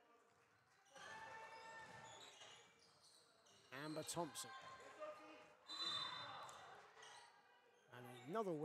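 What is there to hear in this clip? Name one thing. Spectators cheer and clap in an echoing hall.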